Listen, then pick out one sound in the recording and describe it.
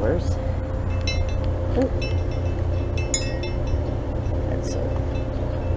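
Wind chimes tinkle and ring.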